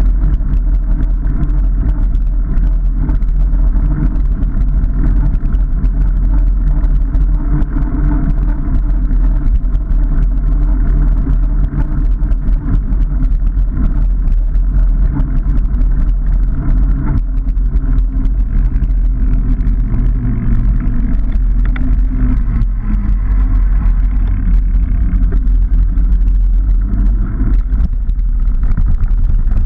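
Wind rumbles loudly against a moving bicycle.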